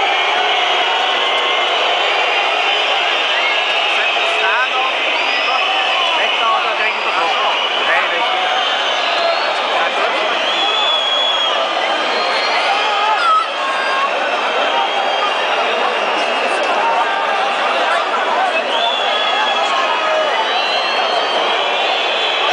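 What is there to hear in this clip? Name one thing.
A large stadium crowd roars and chants loudly all around.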